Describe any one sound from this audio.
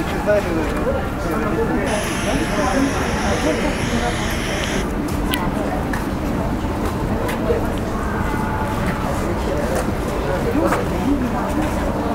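A crowd of young people chatters outdoors at a distance.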